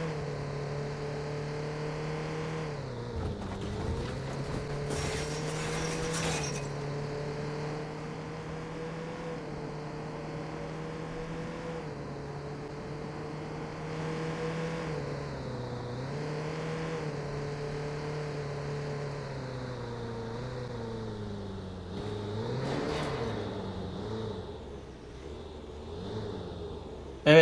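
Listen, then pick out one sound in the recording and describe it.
A car engine hums steadily, its pitch dipping and rising as the car slows and speeds up.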